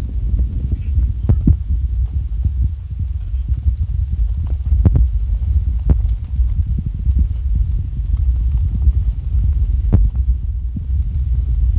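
Wind buffets a microphone on a moving vehicle.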